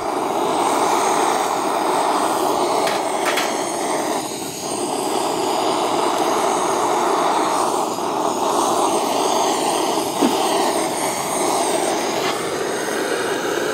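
A gas torch roars steadily as it heats a pot.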